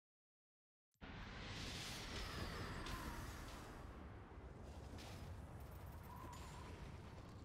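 Magic spell effects whoosh and crackle in a video game.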